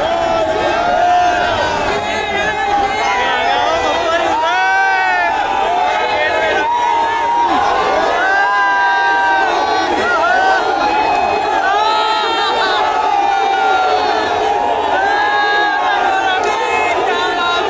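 A large crowd cheers and shouts loudly all around.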